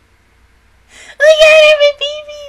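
A young woman laughs loudly into a close microphone.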